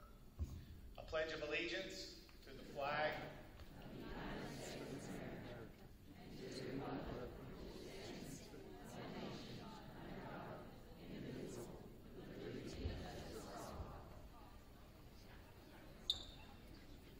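A woman sings slowly through a loudspeaker in a large echoing hall.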